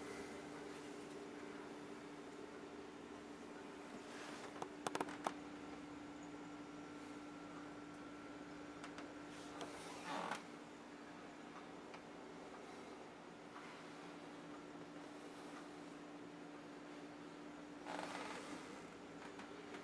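A refrigerator hums steadily.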